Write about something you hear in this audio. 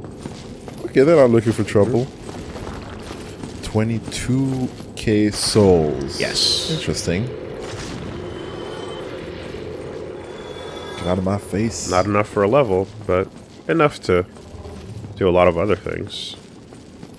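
A young man talks with animation over a microphone.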